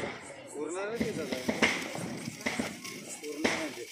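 A firework fountain hisses and crackles.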